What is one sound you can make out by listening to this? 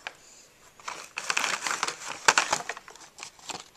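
Plastic packaging crinkles and rustles as a hand handles it.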